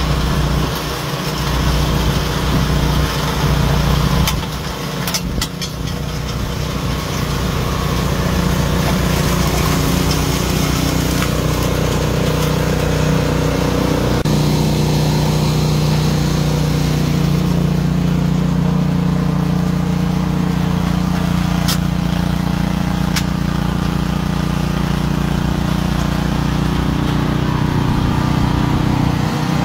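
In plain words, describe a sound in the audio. A snow blower engine roars steadily close by.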